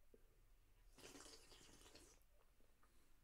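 A young man gulps down a drink.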